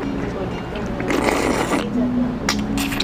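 A man slurps food noisily.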